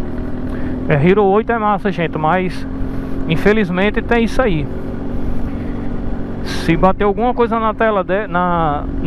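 A motorcycle engine revs up and down in quick bursts.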